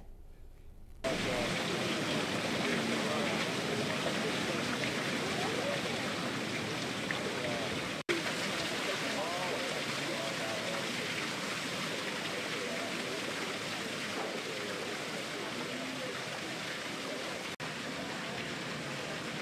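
Fountain water splashes and trickles steadily outdoors.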